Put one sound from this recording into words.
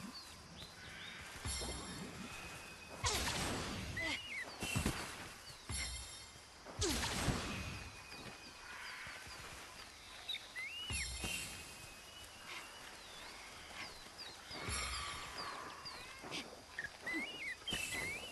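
Footsteps crunch on grass and dirt.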